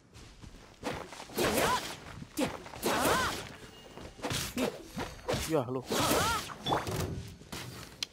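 A sword whooshes and slashes in quick strokes.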